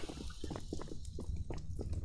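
An explosion rumbles at a distance.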